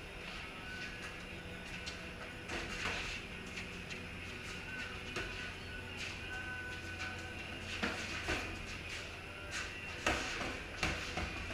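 Sneakers squeak and shuffle on a concrete floor.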